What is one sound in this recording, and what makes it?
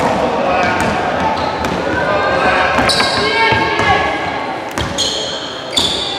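A basketball is dribbled on a hardwood floor.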